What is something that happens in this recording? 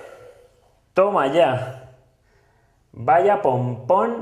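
A man speaks cheerfully and with animation, close by.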